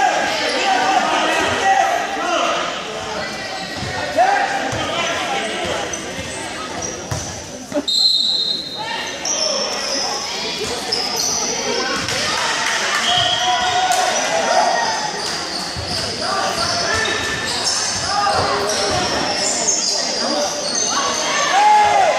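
Sneakers squeak sharply on a hard court floor.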